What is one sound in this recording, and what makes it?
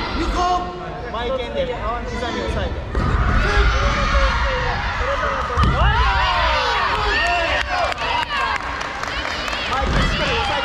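A crowd of young spectators shouts encouragement in a large echoing hall.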